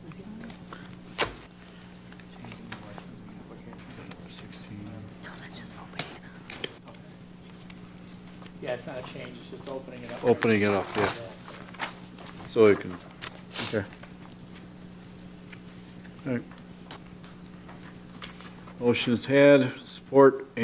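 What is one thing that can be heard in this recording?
Papers rustle.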